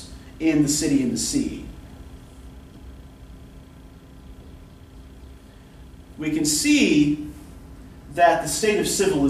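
A man speaks calmly and clearly nearby, in pauses.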